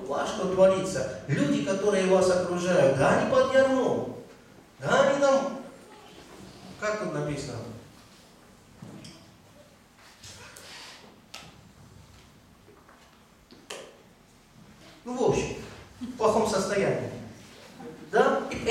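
A man speaks with animation into a microphone over a loudspeaker, with pauses, in an echoing room.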